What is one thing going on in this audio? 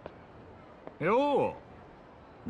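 A man speaks a short greeting calmly and close by.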